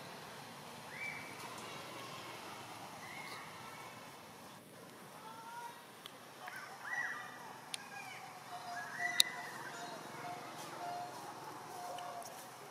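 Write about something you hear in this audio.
A baby monkey squeaks softly and repeatedly nearby.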